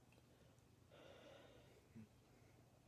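A man sips soda from a glass.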